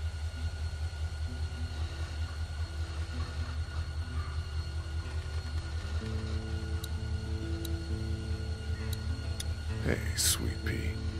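An acoustic guitar plays a slow, gentle tune.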